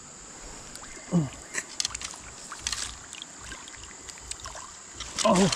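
Water splashes as a landing net scoops a fish from a river.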